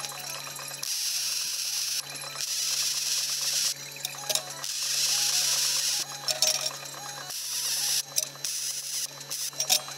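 An arc welder crackles and sizzles steadily.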